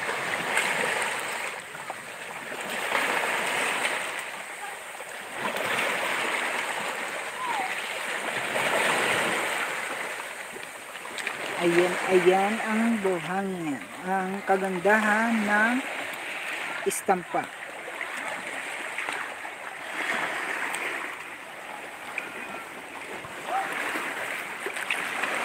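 Small waves lap and wash over rocks at the shore in gentle swells.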